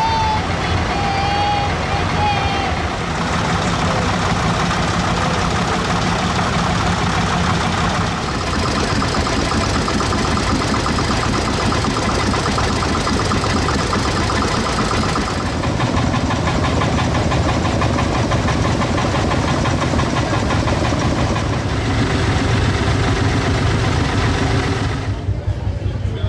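Old tractor engines chug and rumble close by as they roll past.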